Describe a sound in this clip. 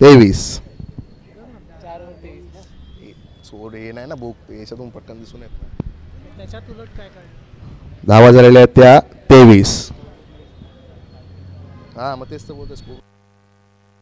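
Young men talk and call out to each other on an open field.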